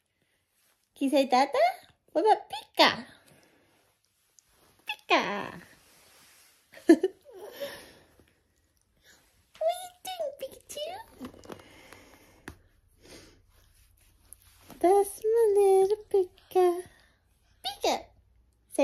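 A baby babbles and squeals happily close by.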